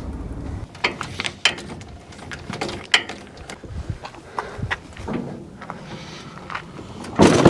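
A quad bike clatters and knocks against a metal trailer.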